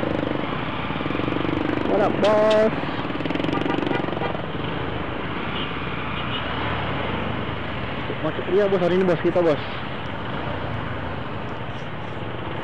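Engines of nearby motorcycles and cars rumble in slow traffic.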